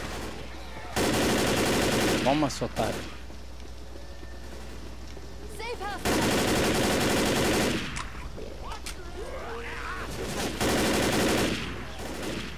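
Rapid rifle fire rattles in loud bursts.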